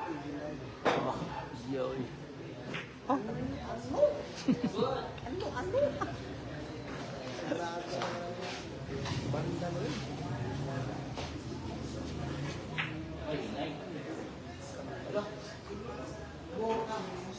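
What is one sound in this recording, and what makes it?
Billiard balls knock against each other.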